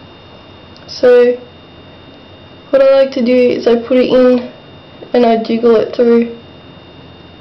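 A young woman speaks close by, calmly, into a microphone.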